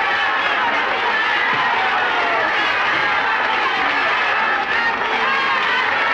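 Women clap their hands.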